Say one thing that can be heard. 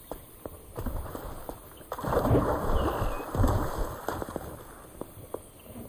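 Water splashes as someone wades through shallows.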